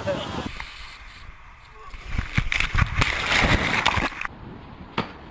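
Water splashes and sprays loudly.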